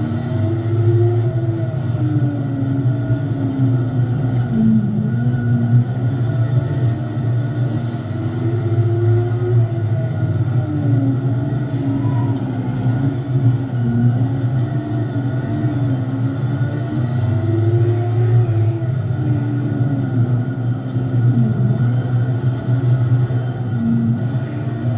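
A race car engine roars up close, its pitch rising and falling through the laps.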